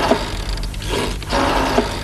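A rotary telephone dial whirs and clicks.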